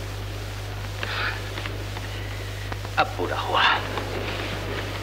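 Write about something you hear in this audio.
A man speaks briefly, slightly muffled.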